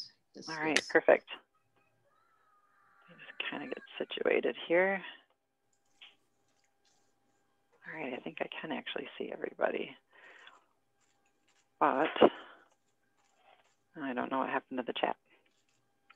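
An adult speaks calmly over an online call, in short bursts with pauses.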